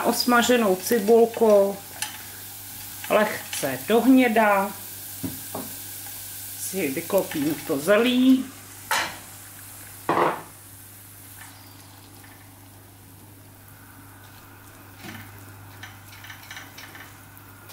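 A spatula scrapes and stirs in a frying pan.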